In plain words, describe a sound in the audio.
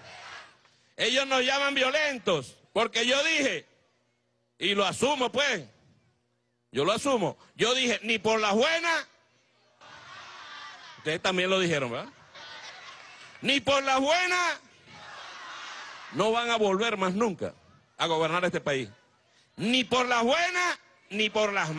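A man speaks forcefully into a microphone over loudspeakers.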